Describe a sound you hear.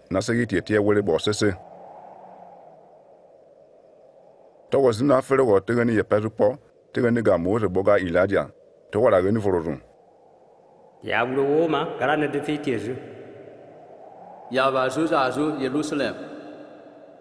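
A man speaks slowly and calmly, close by.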